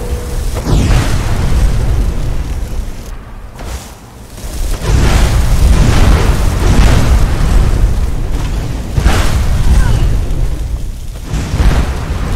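Electric magic crackles and sizzles.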